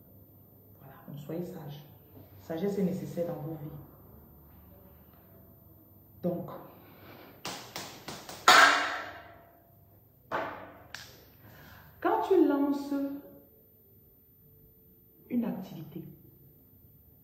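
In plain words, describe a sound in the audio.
A woman speaks close to a phone microphone, in short bursts with pauses.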